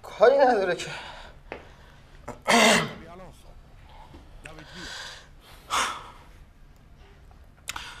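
A young man speaks with emotion, close by.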